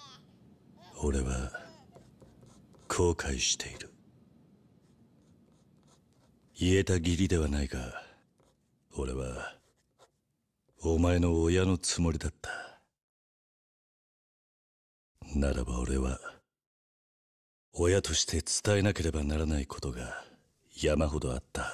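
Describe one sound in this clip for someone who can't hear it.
A man speaks in a low, calm, heavy voice, close to the microphone.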